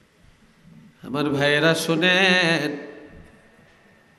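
An elderly man chants a long, drawn-out phrase in a singing voice through a microphone.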